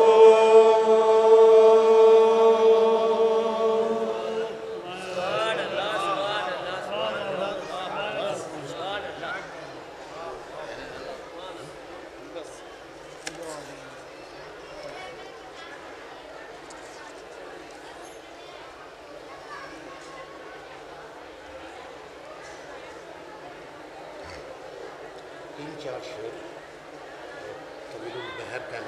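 A man sings a long held note into a microphone, then his voice wavers and grows quieter.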